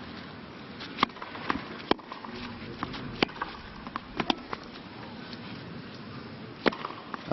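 A tennis ball is struck back and forth with sharp pops.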